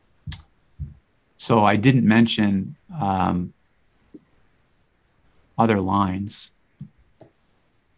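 A man speaks calmly through a microphone, as on an online call.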